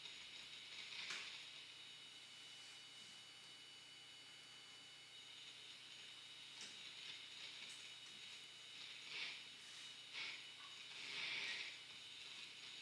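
A man makes soft crackling and hissing noises close to a microphone.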